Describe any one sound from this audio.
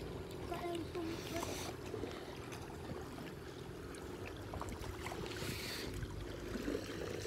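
Water splashes.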